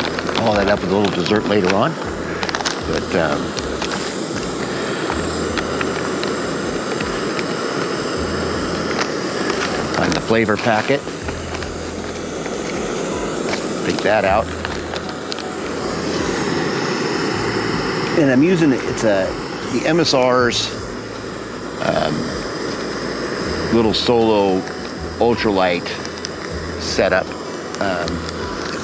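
An older man talks calmly close by.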